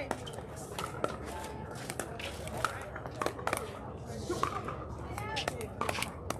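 Paddles knock balls with sharp hollow pops across nearby courts.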